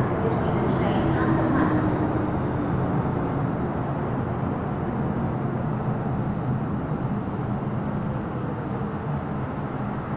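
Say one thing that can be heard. A subway train rumbles and rattles past, echoing in an enclosed station.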